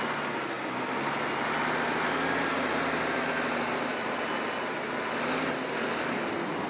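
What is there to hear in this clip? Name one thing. A heavy diesel loader engine rumbles steadily nearby.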